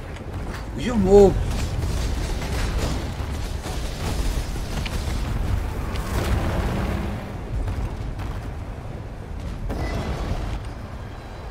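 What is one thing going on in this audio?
Fiery spell blasts boom and crackle in a video game battle.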